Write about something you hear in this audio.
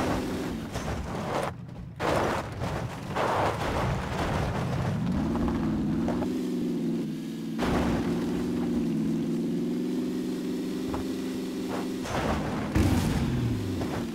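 Electric sparks crackle and zap around a car.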